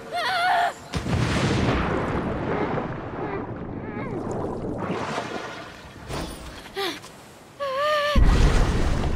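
Water splashes and churns as someone swims.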